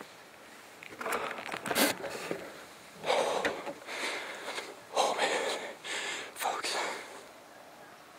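A man whispers excitedly close to a microphone.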